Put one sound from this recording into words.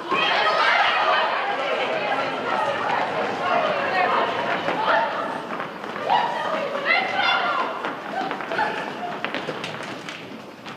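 Feet patter and shuffle on a wooden stage floor.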